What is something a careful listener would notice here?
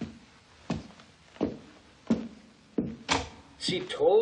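Footsteps echo steadily on a hard floor.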